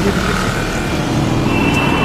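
A motorbike engine roars past.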